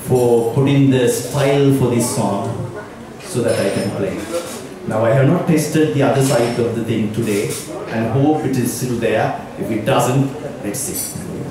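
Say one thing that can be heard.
An elderly man speaks with animation through a headset microphone and loudspeakers.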